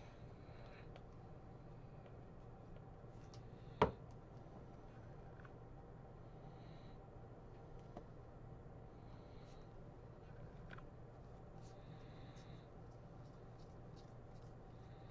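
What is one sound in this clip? Trading cards rustle and slide softly between fingers.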